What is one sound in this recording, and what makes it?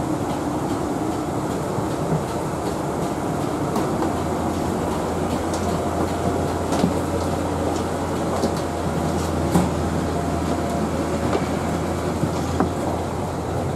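An aircraft engine hums low and steadily nearby.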